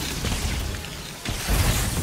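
Electric zaps crackle sharply.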